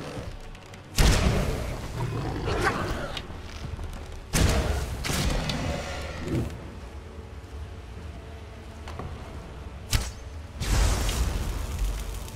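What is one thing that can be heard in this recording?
A fiery blast bursts with a loud whoosh and crackle.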